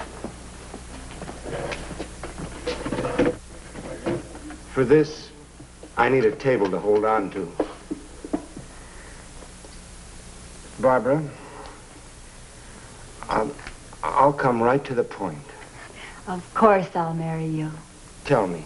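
A young woman talks softly, close by.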